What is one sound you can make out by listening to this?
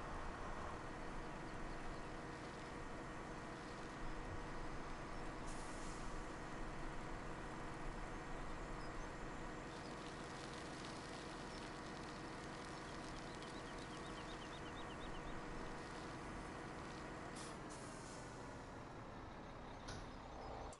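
Trailer wheels rumble over a rough track.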